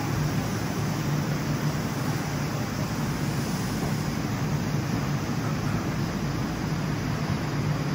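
A train rumbles steadily as it pulls away along a platform.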